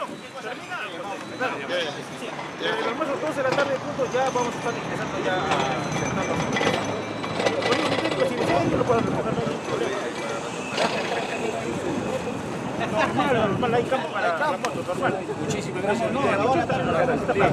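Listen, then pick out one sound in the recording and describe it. A middle-aged man speaks with animation outdoors.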